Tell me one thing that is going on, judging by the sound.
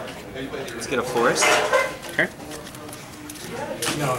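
Playing cards are slapped down onto a table.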